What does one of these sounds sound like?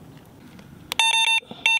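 An electronic bite alarm beeps.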